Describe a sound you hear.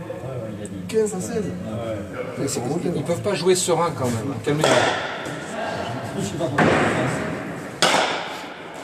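A ball smacks against a wall in a large echoing hall.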